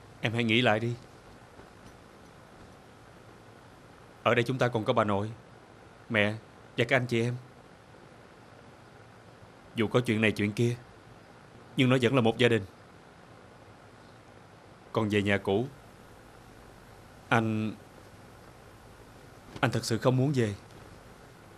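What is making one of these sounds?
A young man speaks calmly in short phrases, close by.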